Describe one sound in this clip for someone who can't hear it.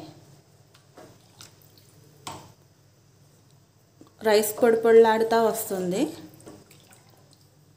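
A metal ladle scrapes and knocks against a pot while stirring thick liquid.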